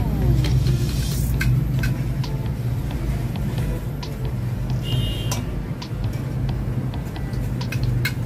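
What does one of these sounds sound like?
A spoon stirs and clinks against a metal pot.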